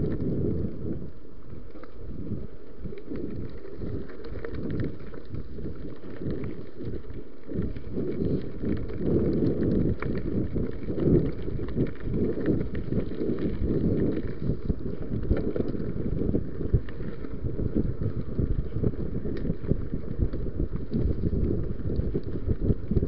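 Bicycle tyres crunch and rattle over a bumpy dirt trail.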